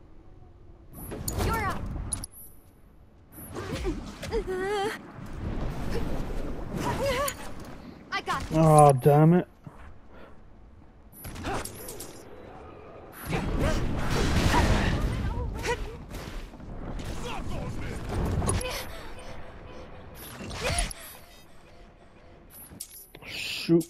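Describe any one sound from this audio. Magic blasts whoosh and crash in a video game battle.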